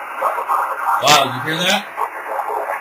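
A radio whistles and warbles briefly as it is tuned.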